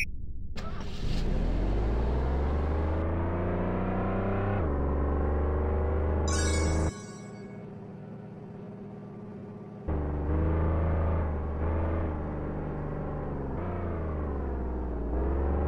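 A car engine revs and shifts gears as the car speeds up.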